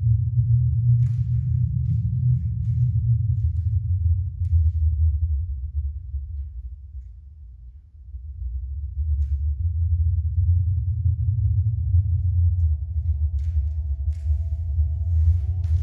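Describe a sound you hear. Bare feet thump and slide lightly on a hard floor.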